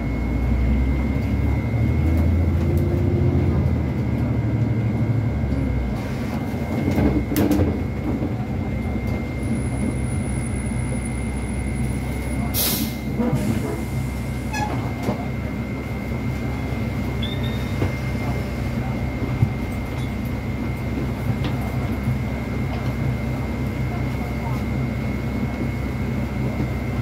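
The bus rattles and creaks over the road.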